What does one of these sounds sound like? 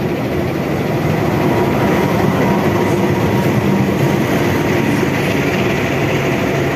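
Train wheels clatter on the rails as carriages roll past close by.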